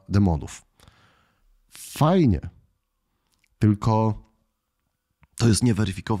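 A man talks into a close microphone with animation, in short bursts.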